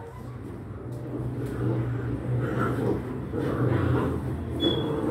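Puppies lap and chew food noisily from a dish.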